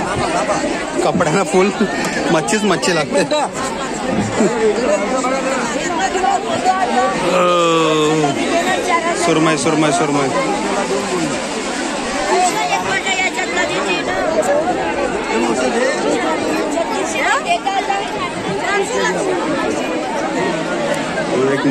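A busy crowd of men and women chatter all around, close by.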